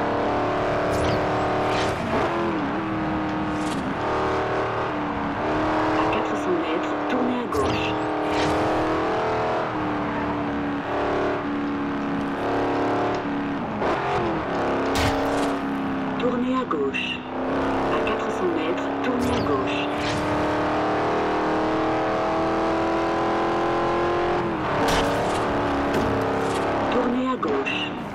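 Metal crashes and scrapes as a car hits roadside posts.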